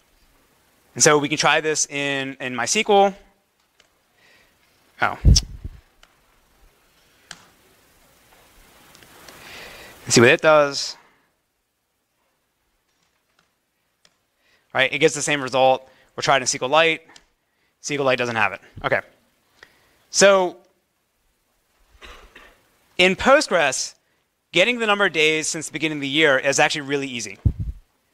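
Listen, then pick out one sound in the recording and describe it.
A man lectures through a microphone in a large room, speaking in short bursts with pauses.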